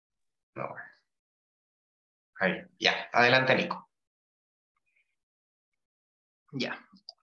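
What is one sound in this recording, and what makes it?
A young man speaks calmly through an online call.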